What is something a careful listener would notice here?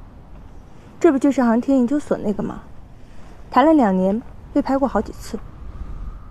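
Another young woman speaks calmly close by.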